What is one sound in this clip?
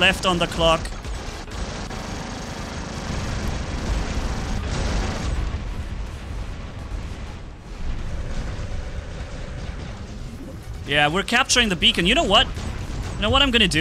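Guns fire and explosions boom.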